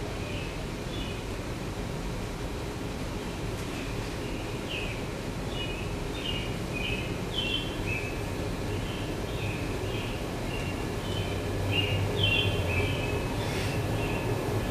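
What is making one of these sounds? Short electronic chirping tones play in quick, shifting patterns.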